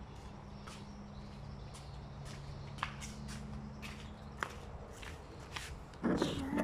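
Sandals slap on a hard floor as a woman walks up close.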